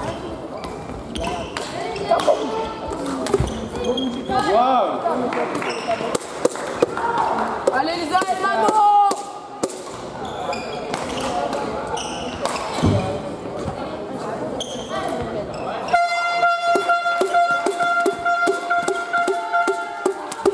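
Shuttlecocks are struck with sharp pops of badminton rackets in a large echoing hall.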